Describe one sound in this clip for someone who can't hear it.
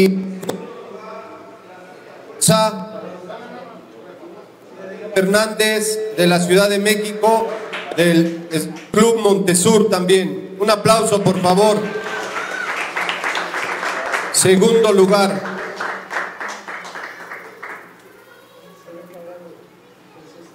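A man announces loudly through a microphone and loudspeaker in an echoing hall.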